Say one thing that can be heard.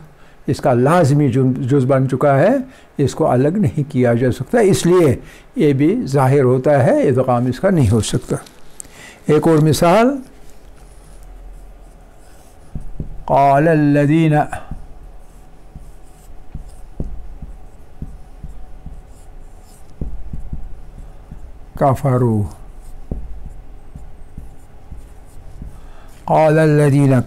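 An elderly man speaks calmly and steadily, in a small room, pausing now and then.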